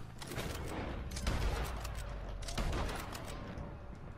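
Rifle shots crack outdoors.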